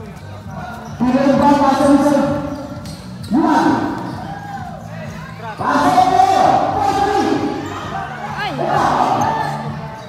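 A large crowd cheers and shouts loudly in bursts.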